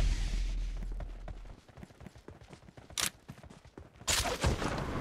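Quick footsteps thud on grass.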